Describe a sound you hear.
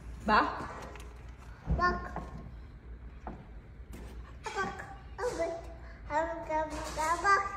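A toddler babbles and chatters close by.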